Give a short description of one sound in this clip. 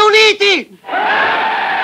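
A man shouts a speech through a loudspeaker.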